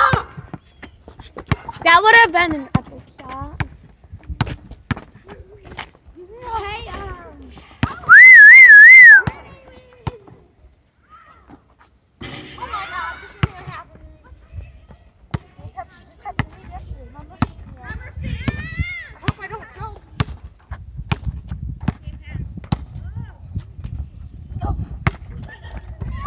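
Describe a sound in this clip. A basketball bounces on asphalt.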